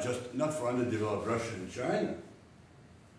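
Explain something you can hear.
An elderly man speaks calmly in a room.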